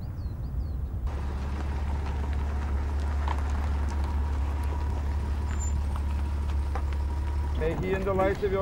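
A car engine hums low.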